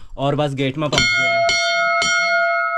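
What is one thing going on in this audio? A metal bell is struck and rings out.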